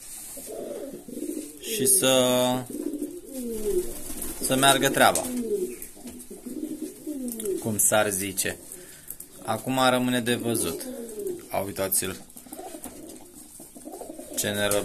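Pigeons coo loudly and repeatedly close by.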